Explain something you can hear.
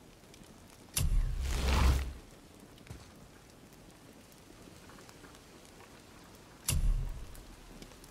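A game menu makes a loud whooshing chime as a new panel opens.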